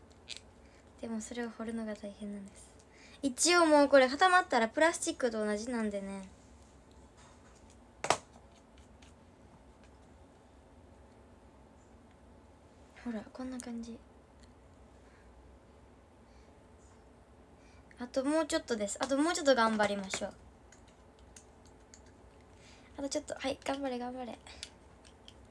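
A young girl speaks brightly and close to a microphone, in short bursts with pauses.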